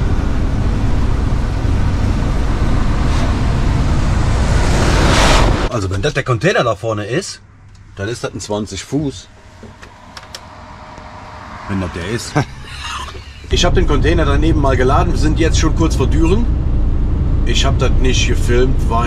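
A truck's engine and tyres rumble loudly and steadily on the road.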